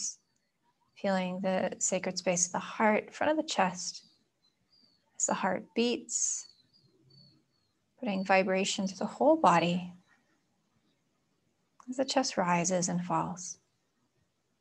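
A young woman speaks calmly and softly close to a microphone, with long pauses.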